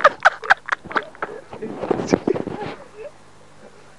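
A young man laughs up close.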